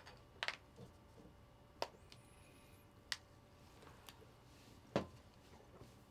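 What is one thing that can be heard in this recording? Small objects click and clatter on a table.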